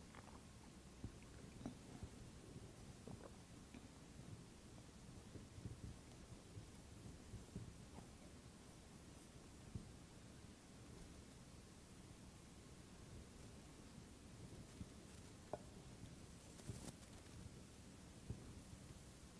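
Small objects clink and knock softly on a table.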